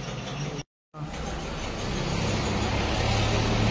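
A large off-road vehicle's engine rumbles and revs up.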